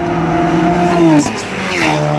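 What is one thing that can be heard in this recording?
A car rushes past at high speed.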